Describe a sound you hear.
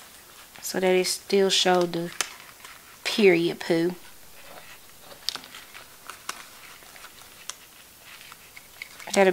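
Paper sheets rustle and crinkle as they are handled close by.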